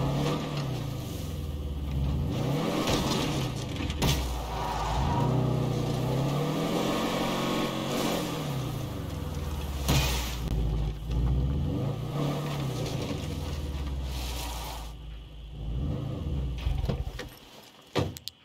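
A truck engine rumbles and revs up and down as it drives.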